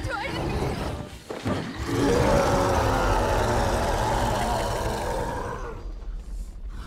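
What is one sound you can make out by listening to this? A huge creature roars loudly.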